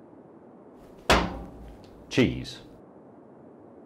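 An elderly man speaks loudly and briefly.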